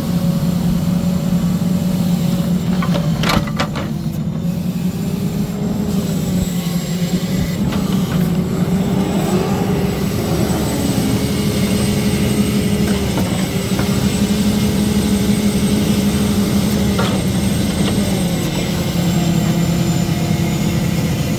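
A hydraulic log loader whines as the boom swings.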